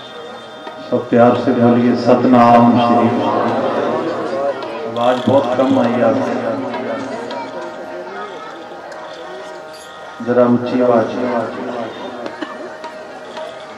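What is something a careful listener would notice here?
A man sings loudly into a microphone in bursts.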